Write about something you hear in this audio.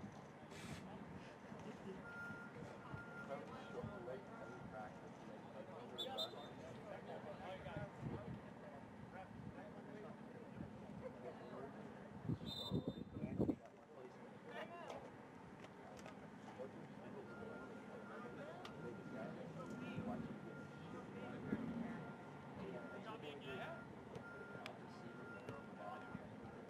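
Young people talk and call out nearby outdoors.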